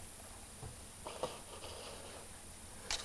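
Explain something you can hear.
A hand turns a boxed toy over, scraping it softly on a table.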